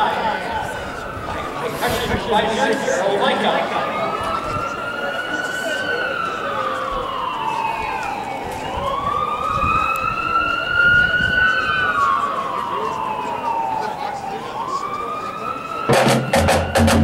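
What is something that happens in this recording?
A marching band plays brass instruments outdoors.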